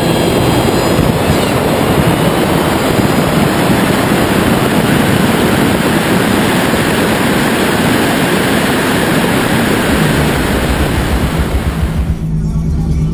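A car engine revs hard and drones.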